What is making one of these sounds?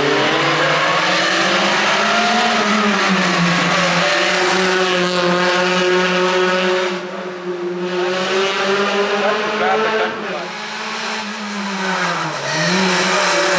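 A racing car engine roars loudly, revving up and dropping as it shifts gears.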